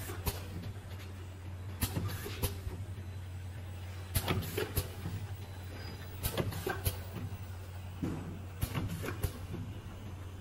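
Plastic bottles clatter and knock against each other on a conveyor.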